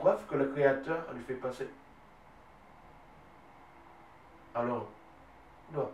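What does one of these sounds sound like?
A man speaks calmly close by, with pauses.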